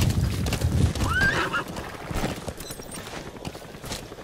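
A horse gallops, hooves thudding on dirt.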